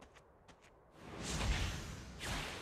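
A heavy punch lands with a loud rushing impact.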